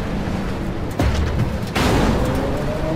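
A tank cannon fires with a loud, sharp boom.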